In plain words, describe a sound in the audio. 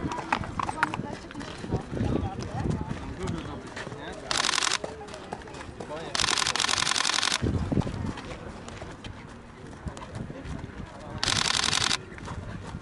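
Horses' hooves thud at a walk on a dirt path.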